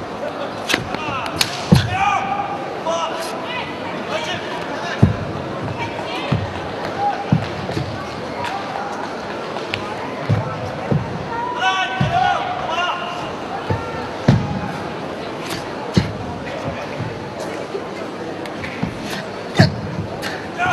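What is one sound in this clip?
A large crowd murmurs in an echoing hall.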